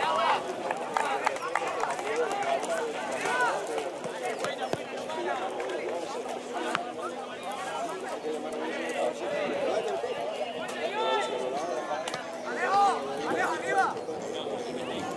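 Men shout and call to each other from a distance outdoors.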